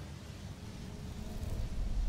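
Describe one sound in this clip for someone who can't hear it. A spell bursts out with a loud rushing blast.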